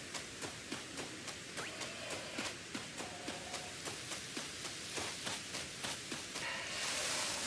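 Quick footsteps patter on grass in a steady running rhythm.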